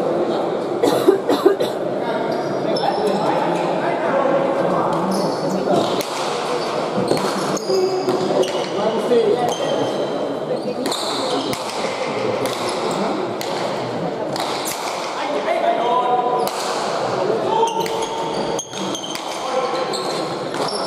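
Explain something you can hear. A hard ball smacks sharply against a wall again and again, with a ringing echo.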